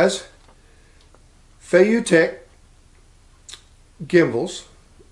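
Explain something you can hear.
An older man speaks calmly and closely into a microphone.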